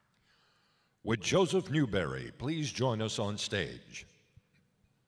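A man speaks clearly through a loudspeaker in a large hall.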